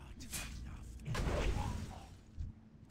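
A fiery spell bursts with a loud whoosh.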